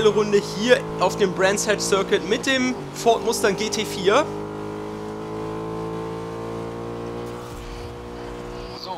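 A race car engine roars at high revs, climbing steadily in pitch.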